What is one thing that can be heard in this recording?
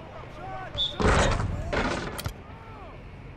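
A basketball slams through a rim with a loud clang.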